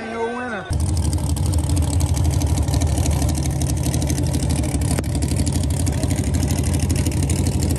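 A race car engine idles with a loud, choppy, lumpy rumble close by.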